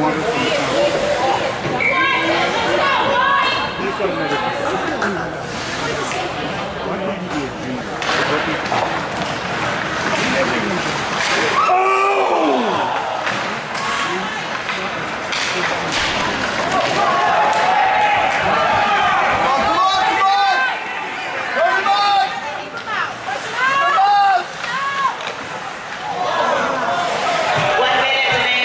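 Spectators shout and cheer in an echoing rink.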